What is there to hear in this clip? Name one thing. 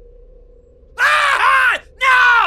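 A man shouts loudly and excitedly close to a microphone.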